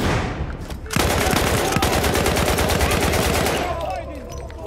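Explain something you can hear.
A submachine gun fires in fast, rattling bursts close by.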